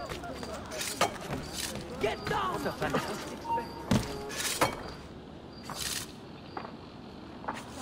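Hands and feet scrape and thud while climbing a wooden wall.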